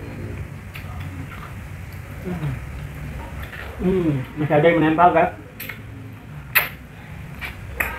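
A young man gnaws and tears at a bony head with his teeth.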